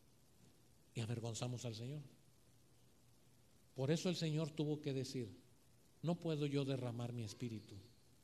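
A middle-aged man speaks with animation into a microphone, heard through loudspeakers.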